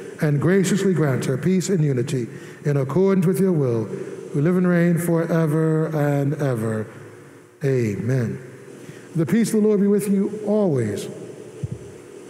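A man chants a prayer in song through a microphone, echoing in a large hall.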